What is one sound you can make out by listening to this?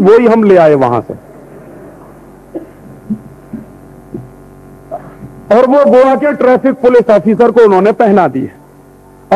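A man speaks forcefully into a microphone, pausing between phrases.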